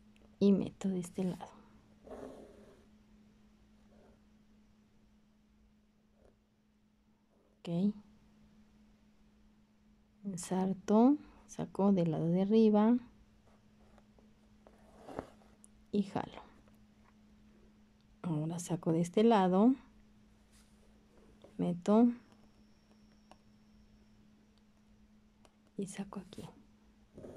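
A needle and thread pull softly through taut cloth.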